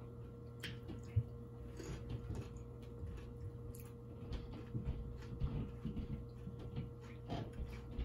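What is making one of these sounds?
Tortilla chips crunch as they are eaten.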